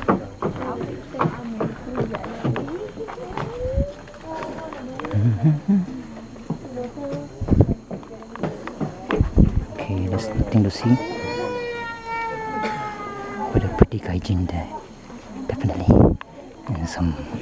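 A crowd of men, women and children chatter nearby outdoors.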